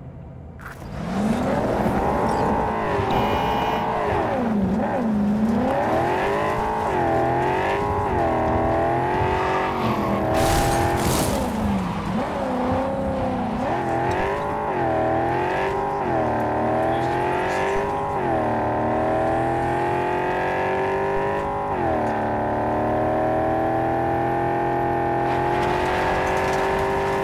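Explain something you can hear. A car engine revs hard, rising and falling in pitch as the gears shift.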